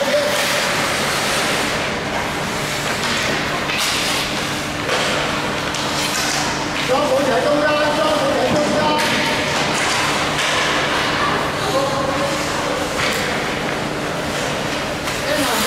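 Hockey sticks clack against the puck and the ice.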